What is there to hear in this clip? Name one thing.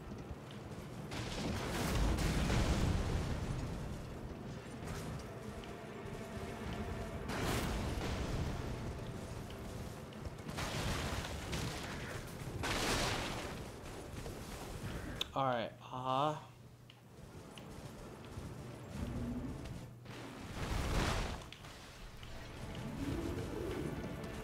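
Wind gusts rush past in waves.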